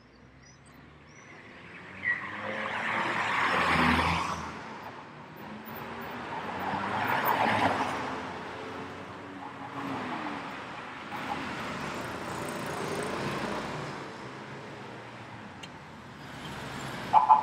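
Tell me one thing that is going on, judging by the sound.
Cars drive past close by on a city street, one after another.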